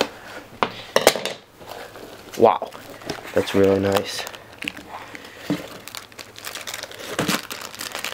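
Packing paper and plastic rustle and crinkle as a toy is lifted out.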